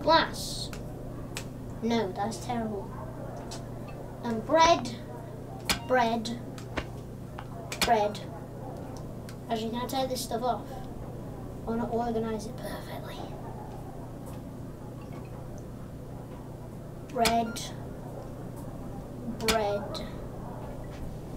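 A young boy talks with animation in short bursts.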